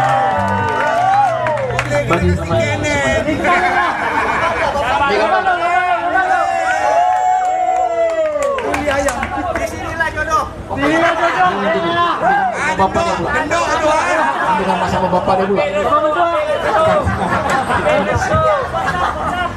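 A woman sings into a microphone over a loudspeaker.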